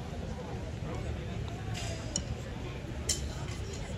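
Drumsticks tap on a snare drum.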